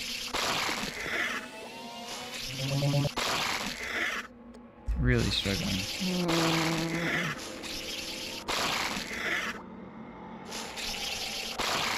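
Monstrous plants growl and snap their jaws.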